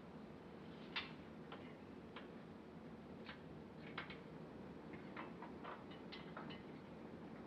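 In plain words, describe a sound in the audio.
A metal lock clicks and rattles.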